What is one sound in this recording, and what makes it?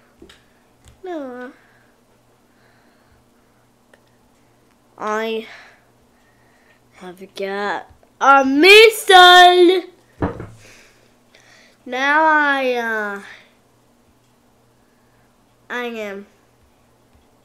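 A boy talks animatedly and exclaims close by.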